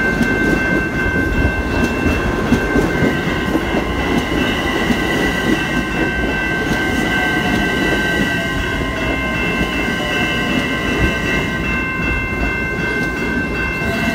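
A passenger train rushes past close by with a loud rumble and clatter.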